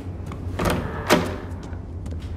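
A heavy metal door creaks and swings open.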